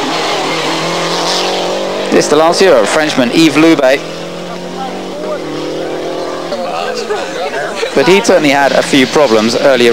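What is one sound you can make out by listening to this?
A rally car engine roars as the car speeds along a road.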